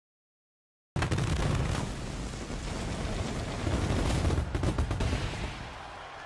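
Fireworks burst and hiss loudly.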